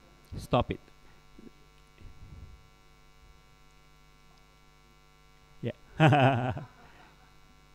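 A middle-aged man speaks with animation, in short bursts with pauses.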